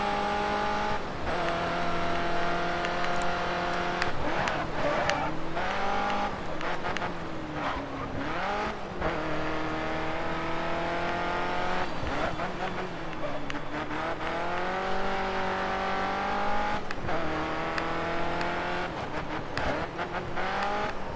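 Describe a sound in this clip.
A racing car engine roars at high revs, dropping and rising in pitch as gears shift.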